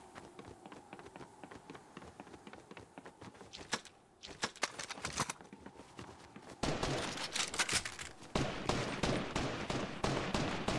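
Footsteps thud quickly on wooden boards.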